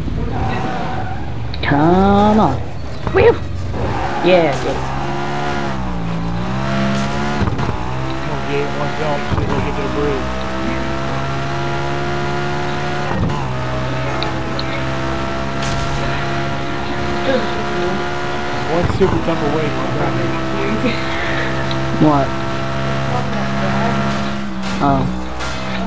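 A sports car engine roars and revs up and down through the gears.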